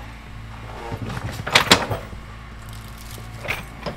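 Brush and branches crack and crunch as a loader pushes through them.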